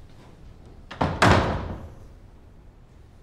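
Heavy wooden doors swing shut with a thud.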